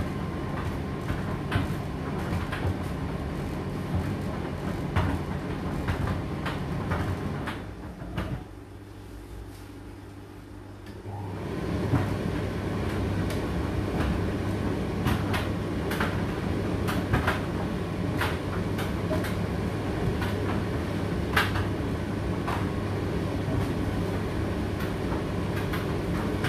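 A condenser tumble dryer runs a cycle, its drum humming and tumbling, pausing briefly before restarting.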